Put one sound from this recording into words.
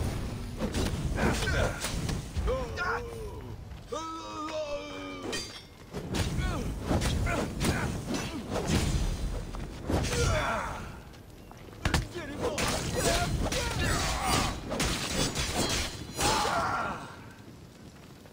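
Fire roars and crackles as flaming weapons swing.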